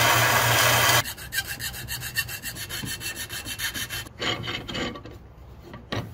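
A file scrapes back and forth across metal in quick strokes.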